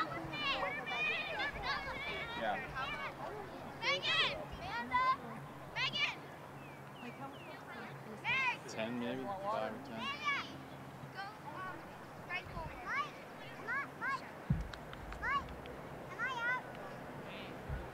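Young girls shout and call out across an open playing field.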